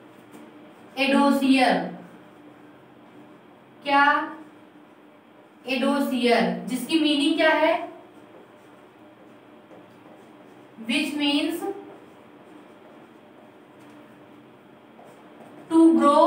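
A woman speaks calmly in short phrases, close by, as if teaching.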